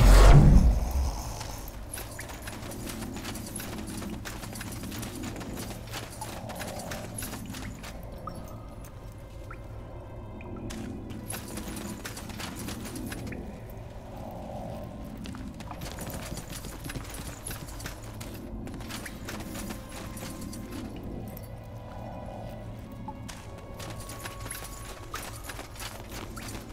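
Footsteps crunch steadily on stony ground.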